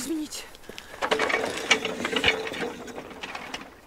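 A young woman sobs.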